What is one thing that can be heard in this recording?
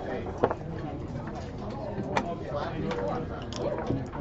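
Dice clack as a hand scoops them up.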